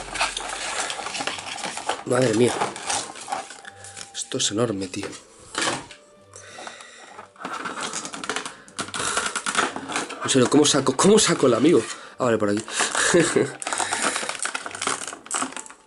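Hard plastic packaging creaks and clatters as hands handle it.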